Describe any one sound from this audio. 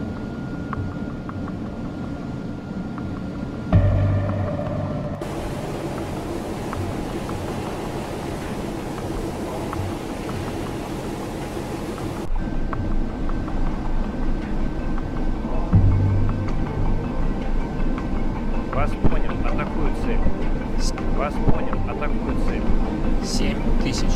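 Waves wash against a moving ship's hull.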